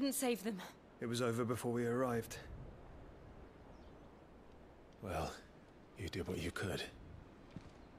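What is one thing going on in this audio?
A man with a deep voice speaks calmly.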